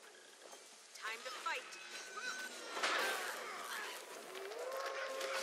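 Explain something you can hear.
Video game spell effects burst and crackle during a fight.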